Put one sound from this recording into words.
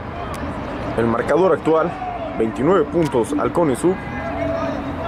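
Young men shout and chant loudly.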